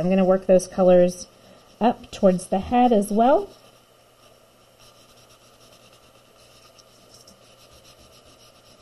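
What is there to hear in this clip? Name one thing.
A soft tissue rubs gently across paper.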